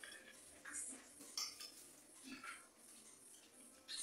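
A fork clinks against a plate.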